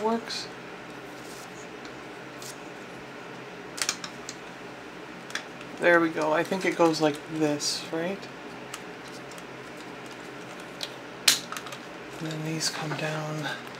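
Plastic toy parts click and snap together.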